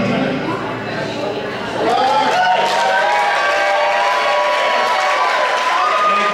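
A bass guitar plays low notes.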